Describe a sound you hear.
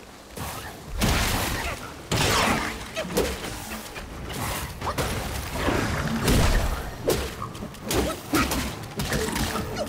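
A sword slashes and strikes hard.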